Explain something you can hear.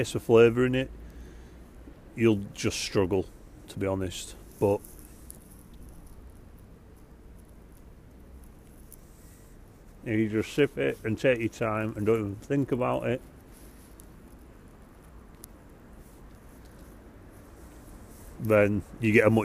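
A man speaks calmly and close up, with pauses.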